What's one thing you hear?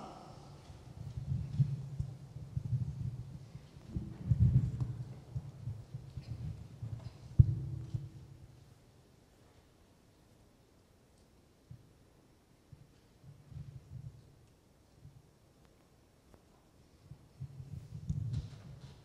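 A woman speaks quietly through a microphone.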